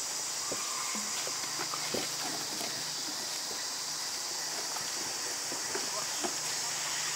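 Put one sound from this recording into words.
Small monkeys knock and scrape a plastic basin on the ground.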